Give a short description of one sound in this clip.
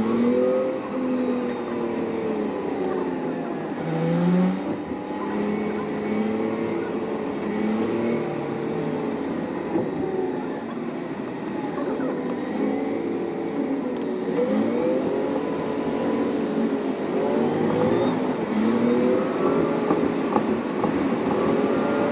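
A bus engine hums steadily as the bus drives along.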